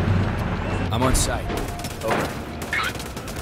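A car crashes into a metal gate with a loud bang.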